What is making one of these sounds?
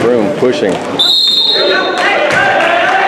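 A referee's whistle blows one long, sharp blast.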